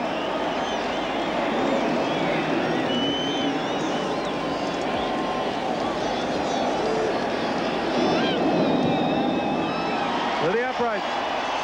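A large crowd roars and cheers in a big stadium.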